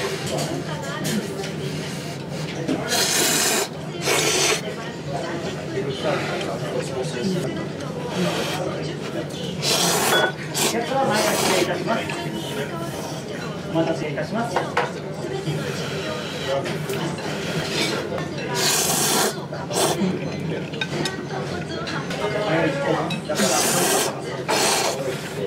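A man talks quietly, close by.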